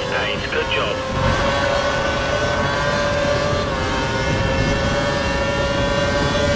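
A racing car engine whines at high revs and changes pitch through gear shifts.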